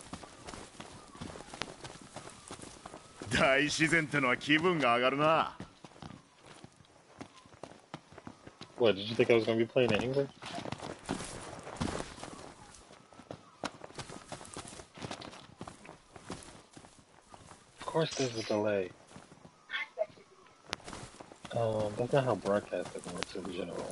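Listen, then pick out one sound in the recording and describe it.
Footsteps patter quickly over grass and rock.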